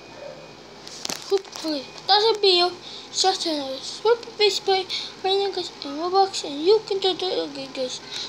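A young boy talks with animation, close to a microphone.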